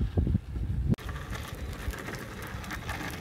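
A skateboard rolls over rough pavement.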